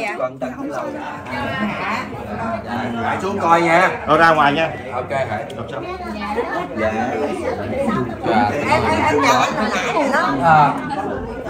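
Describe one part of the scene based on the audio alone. A crowd of men and women chatter and call out.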